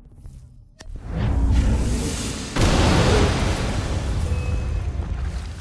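Wolves snarl and growl loudly.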